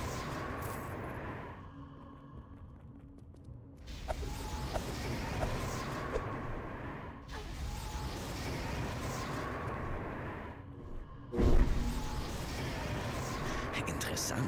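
A trail of fire roars and crackles.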